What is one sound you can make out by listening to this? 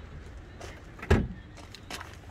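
A car hood slams shut with a loud thud.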